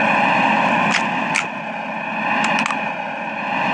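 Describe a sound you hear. A rifle clicks as it is reloaded.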